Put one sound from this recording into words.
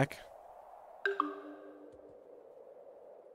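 A soft electronic chime rings once and fades.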